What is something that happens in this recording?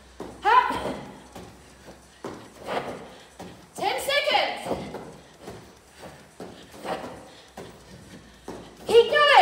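A woman speaks with animation while exercising.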